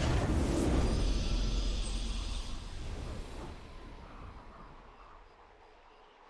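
A triumphant victory fanfare plays and fades.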